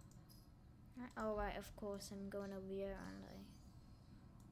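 A young boy speaks with animation close to a microphone.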